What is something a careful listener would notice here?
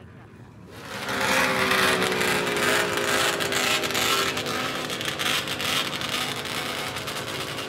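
A snowmobile engine hums steadily close by.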